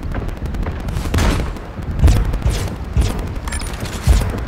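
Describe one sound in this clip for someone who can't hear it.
Heavy blasts go off in quick bursts.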